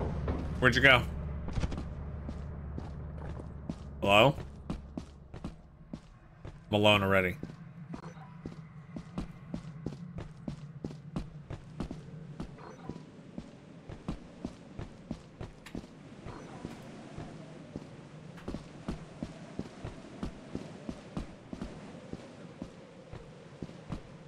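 Footsteps crunch steadily on sand and rock.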